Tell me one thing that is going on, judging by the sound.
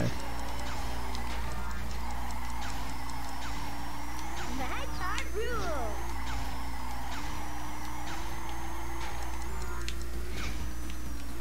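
A kart engine hums steadily, rising and falling in pitch.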